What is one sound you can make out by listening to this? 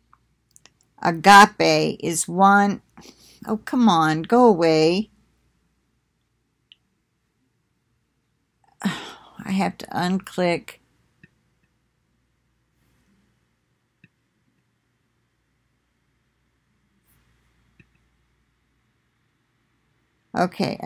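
An elderly woman speaks calmly and close to the microphone, with long pauses.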